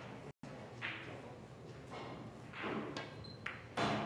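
Pool balls click against each other.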